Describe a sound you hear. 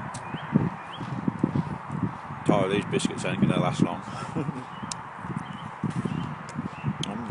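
A man talks close up, outdoors in light wind.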